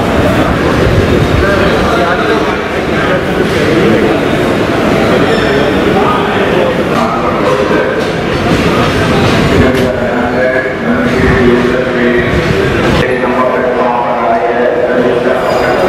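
Several men talk at once in a murmuring group.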